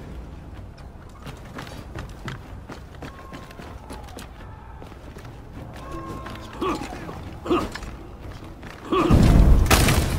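Armoured footsteps thud on wooden planks.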